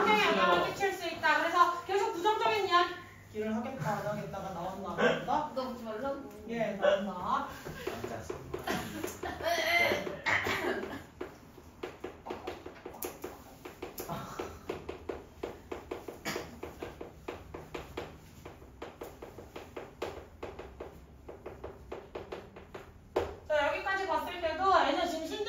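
A young woman speaks calmly and clearly, as if teaching a class.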